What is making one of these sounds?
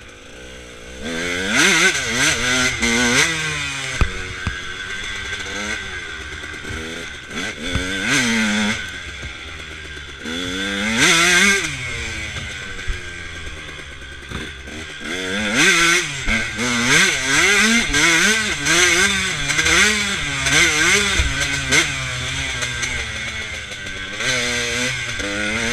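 A dirt bike engine revs loudly, its pitch rising and falling as it speeds up and slows down.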